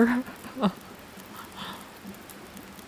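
A young woman gasps and exclaims close to a microphone.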